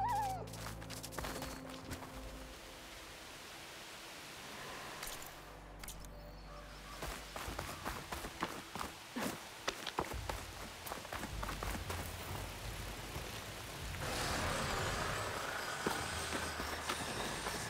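Footsteps crunch on snow and gravel.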